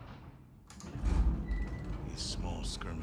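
Elevator doors rumble and slide open.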